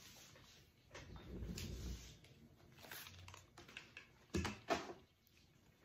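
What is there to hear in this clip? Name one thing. Headphones rustle and thump as they are taken off.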